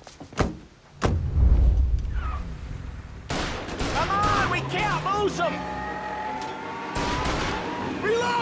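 A car engine starts and rumbles as the car drives off.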